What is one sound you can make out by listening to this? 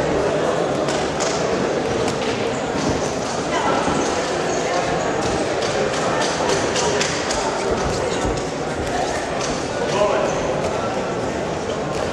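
Boxing gloves thud against each other.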